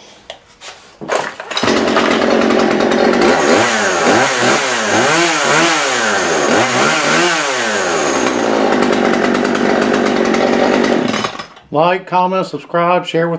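A small petrol chainsaw engine starts up close by and runs loudly, revving up and down.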